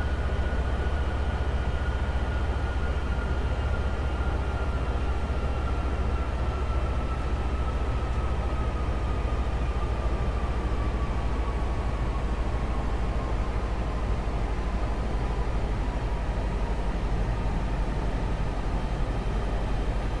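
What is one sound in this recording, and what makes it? A high engine whine slowly drops in pitch.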